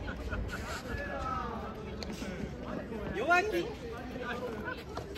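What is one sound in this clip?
Young women talk and laugh outdoors, heard from a short distance.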